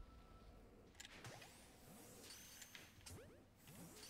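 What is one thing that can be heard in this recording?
A magical blast bursts with a bright crackle.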